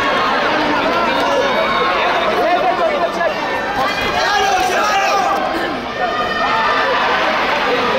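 A large crowd shouts and cheers in a big echoing hall.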